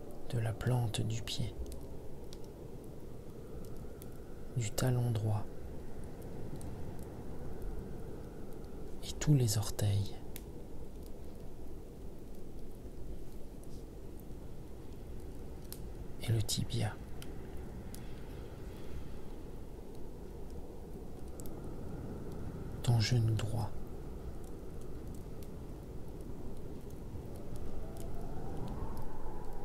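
A wood fire crackles and pops steadily.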